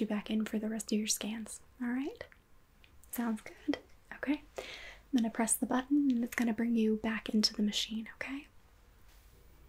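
A young woman speaks close to the microphone in a soft, expressive voice.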